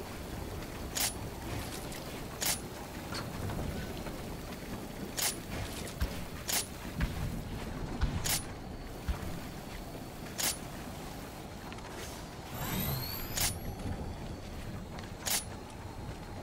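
Wooden building pieces snap into place with sharp clacks, again and again.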